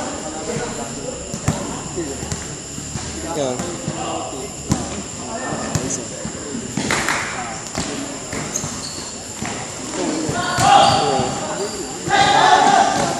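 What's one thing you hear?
Young men shout and call out to each other across a large echoing hall.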